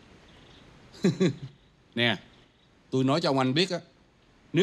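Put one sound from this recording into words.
A middle-aged man speaks calmly indoors.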